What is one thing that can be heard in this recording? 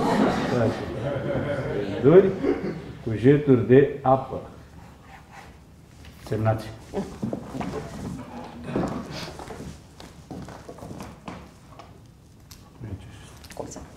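An elderly woman speaks with feeling from a stage, heard from a distance in a reverberant hall.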